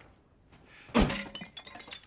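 A knife strikes a ceramic vase with a sharp crack.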